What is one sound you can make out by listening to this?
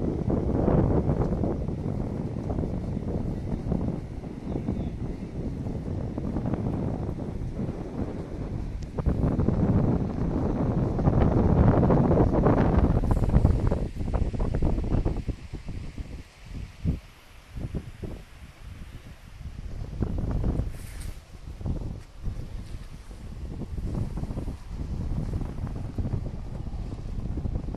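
Wind rumbles and buffets across the microphone outdoors.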